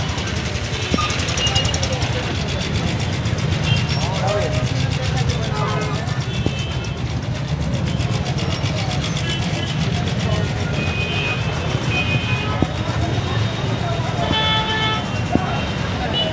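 Horns honk in short bursts nearby.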